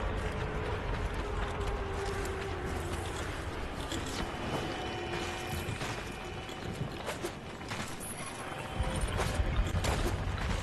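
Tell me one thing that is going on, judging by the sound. Electricity crackles and zaps in sharp bursts.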